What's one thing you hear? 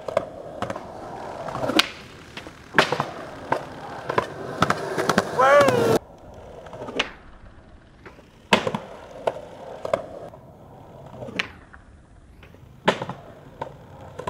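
Skateboard wheels roll on concrete and the board clacks hard on landing.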